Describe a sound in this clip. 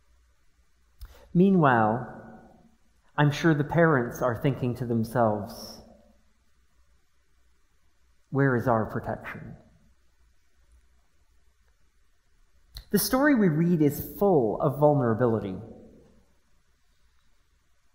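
A middle-aged man speaks calmly through a microphone, with pauses, in a reverberant hall.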